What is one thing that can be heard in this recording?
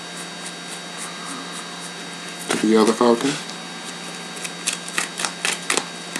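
Playing cards are laid down softly on a cloth mat.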